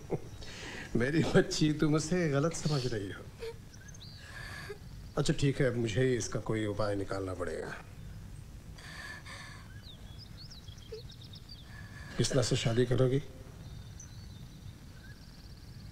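A young woman sobs softly.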